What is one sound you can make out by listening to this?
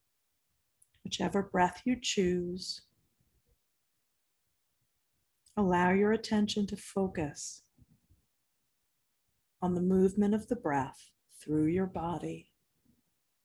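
A middle-aged woman speaks calmly in short phrases over an online call.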